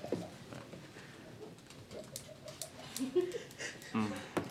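A young woman speaks quietly and cheerfully close by.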